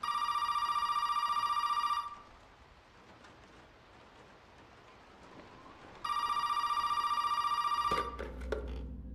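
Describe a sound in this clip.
A telephone rings loudly in two bursts.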